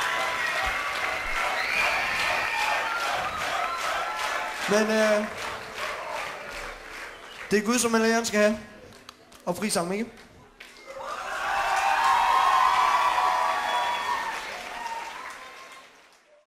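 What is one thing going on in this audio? A crowd cheers loudly in a large hall.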